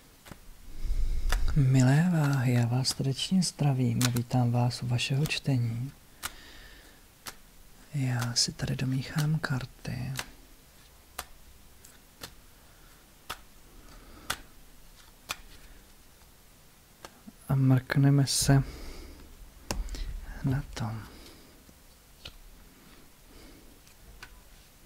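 Playing cards riffle and tap as they are shuffled.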